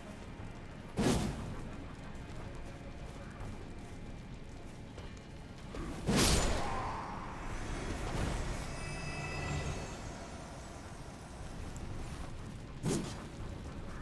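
Sword blows strike with sharp metallic clangs.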